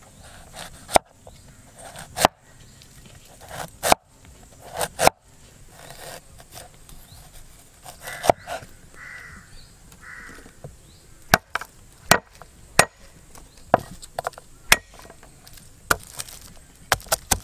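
A cleaver chops sharply on a wooden board.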